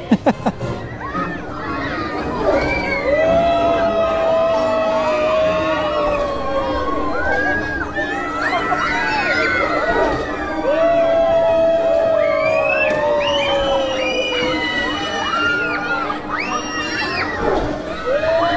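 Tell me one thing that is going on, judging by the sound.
Riders scream loudly on a swinging ship ride.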